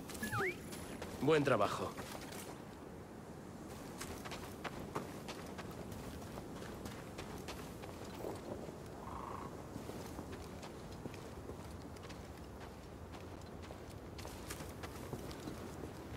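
Footsteps tread over grass and stone.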